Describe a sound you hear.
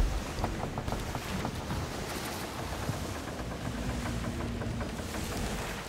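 Waves splash against a sailing ship's hull.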